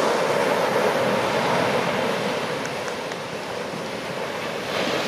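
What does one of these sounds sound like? Surf washes up over sand and drains back.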